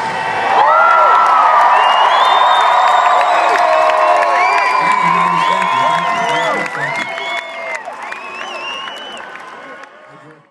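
A large crowd cheers and screams loudly outdoors, then fades away.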